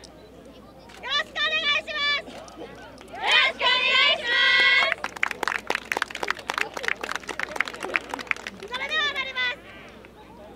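A group of young people shout calls together loudly outdoors.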